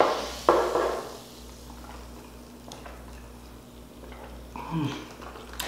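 A young man slurps a drink through a straw.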